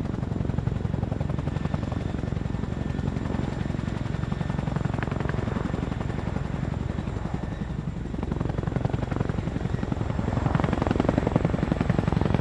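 A tandem-rotor Chinook helicopter hovers close by with heavy thudding rotor blades.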